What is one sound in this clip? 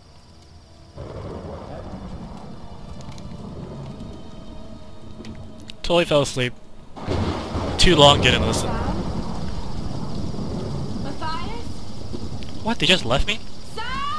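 A campfire crackles and roars.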